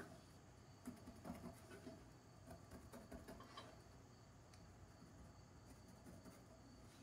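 A pencil scratches softly across wood.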